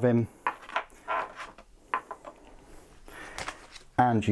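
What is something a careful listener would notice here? A stiff card is set down against a box on a table.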